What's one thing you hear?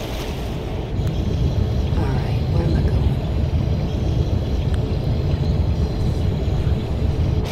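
A small submarine hums and rumbles as it dives underwater.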